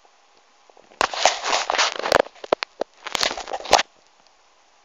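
Small plastic toys rattle as a hand rummages through a plastic box.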